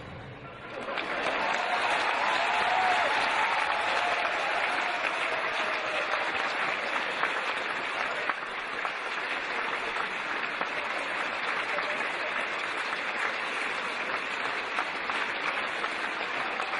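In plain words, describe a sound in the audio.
An audience applauds warmly in a large hall.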